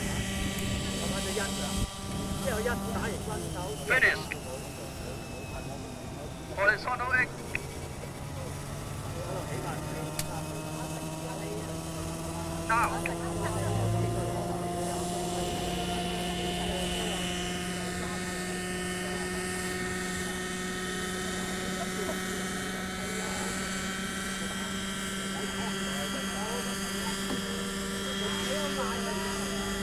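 A small model helicopter engine whines steadily nearby, outdoors.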